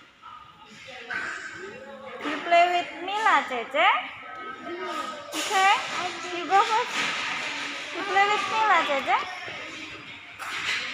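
Young children shout and squeal with excitement.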